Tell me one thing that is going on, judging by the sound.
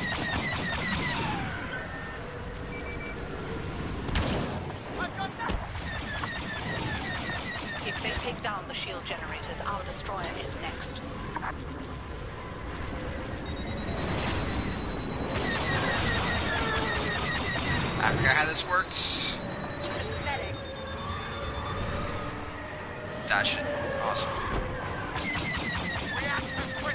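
Starfighter engines roar and whine throughout.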